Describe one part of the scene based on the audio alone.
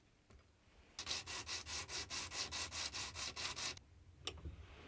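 A steel strip rubs back and forth on sandpaper in quick, even strokes.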